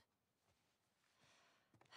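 A young woman speaks softly and soothingly close by.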